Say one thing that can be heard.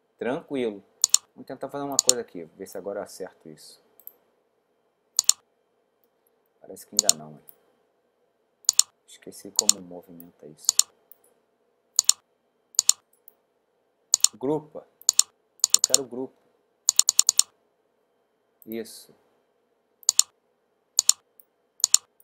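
A computer mouse clicks sharply now and then.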